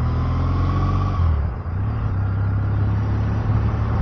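A lorry rushes past close by.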